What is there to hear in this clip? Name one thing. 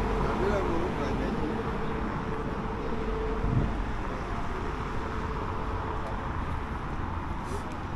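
Street traffic hums steadily in the distance outdoors.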